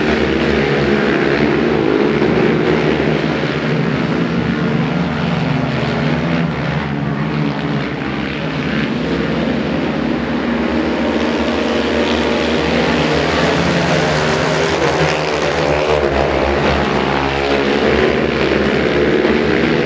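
Quad bike engines rev up and down as the riders take the bends.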